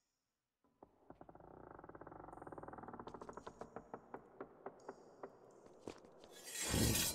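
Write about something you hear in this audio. Quick footsteps patter across a stone floor.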